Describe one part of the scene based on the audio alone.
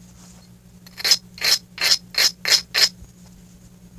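Sandpaper rasps against wood in quick, even strokes.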